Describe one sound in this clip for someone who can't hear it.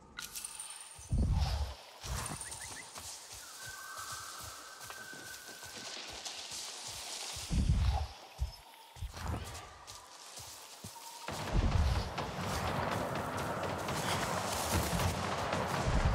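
Footsteps thud and rustle through leafy undergrowth.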